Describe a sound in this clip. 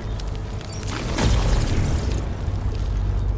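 A bright magical shimmer rings out.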